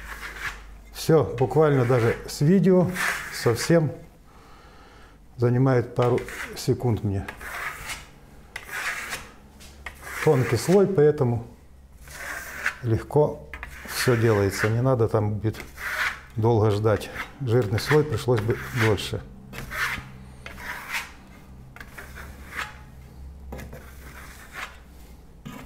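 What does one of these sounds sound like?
A trowel scrapes across a board with soft swishing strokes.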